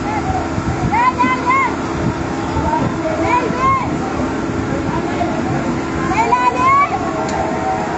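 Men shout loudly in the distance.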